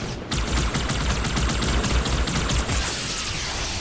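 A plasma weapon fires in a rapid burst of zapping shots.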